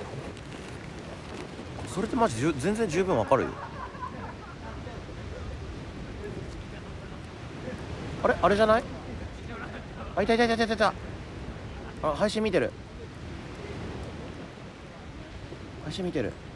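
A wood campfire crackles.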